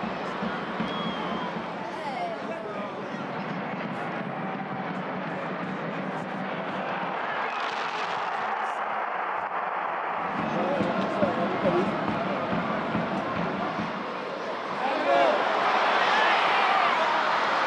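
A large stadium crowd chants and cheers throughout.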